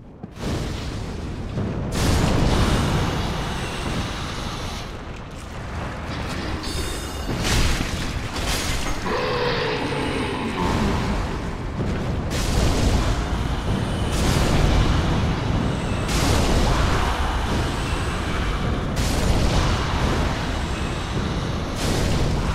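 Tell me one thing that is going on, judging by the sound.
Fireballs whoosh and burst with loud roars.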